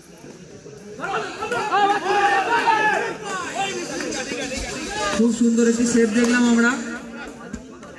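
A crowd of spectators cheers and shouts outdoors.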